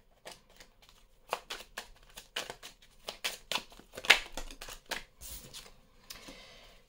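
Playing cards flick and rustle as they are shuffled by hand.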